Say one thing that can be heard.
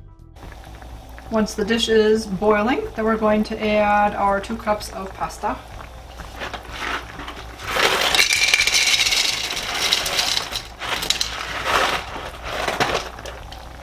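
A thick sauce bubbles and sizzles softly in a pan.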